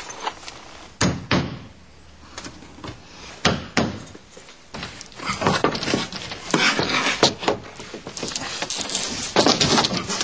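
A hammer knocks sharply on wood.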